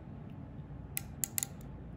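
A metal instrument clicks as hands handle it.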